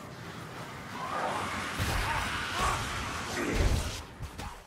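Rat-like creatures screech and snarl.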